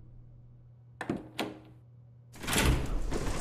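A heavy wooden door unlatches and creaks open.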